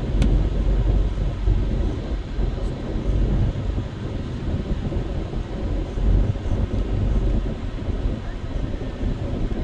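Traffic rumbles along the road outside.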